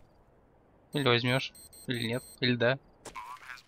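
Rapid electronic beeps sound as keys are pressed on a keypad.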